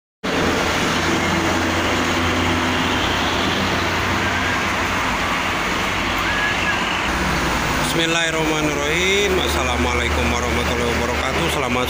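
Large engines drone as buses and trucks pass.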